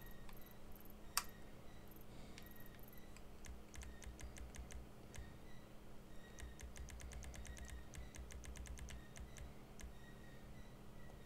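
Soft menu clicks tick quickly, one after another.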